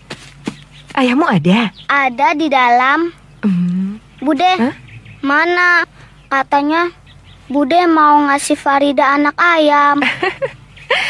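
A woman speaks and laughs warmly.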